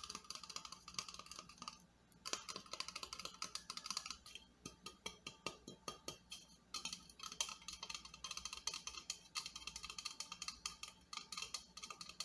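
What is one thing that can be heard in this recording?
Fingernails tap and scratch quickly on a metal can close to the microphone.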